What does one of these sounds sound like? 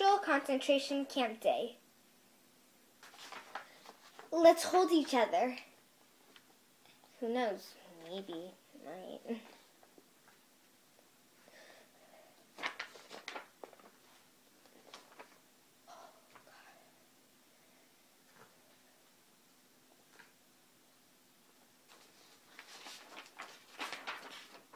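A young girl reads aloud close by, pausing often.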